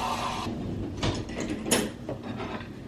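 Dishes clink and clatter.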